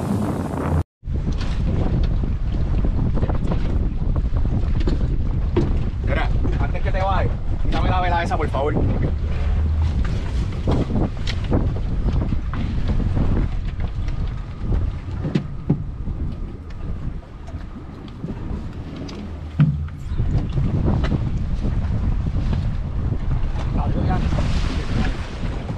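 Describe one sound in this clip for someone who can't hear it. Feet and hands knock against a boat's deck and rails.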